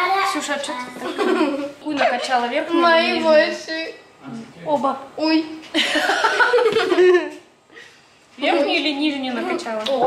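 Girls laugh and chatter nearby.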